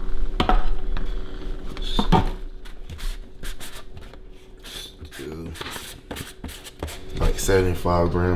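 A plastic lid clicks and scrapes as it is twisted off a tub.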